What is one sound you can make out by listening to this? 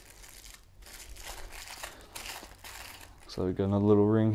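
A plastic bag crinkles as hands unwrap it.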